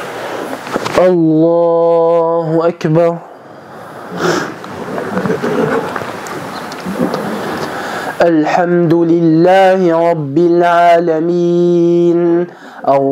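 A young man chants in a long, melodic call through a microphone.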